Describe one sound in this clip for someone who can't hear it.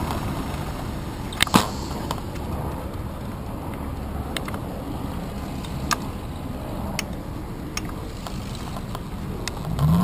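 Bicycle wheels rattle and knock over a bumpy cobbled surface.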